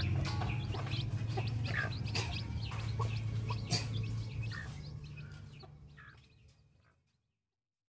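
Chicks peep in high, chirping calls.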